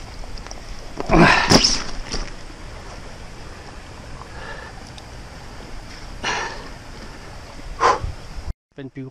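A fish flaps and thrashes on a crinkly plastic mat.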